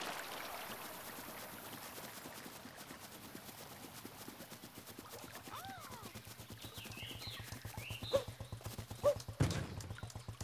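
Quick light footsteps patter on grass.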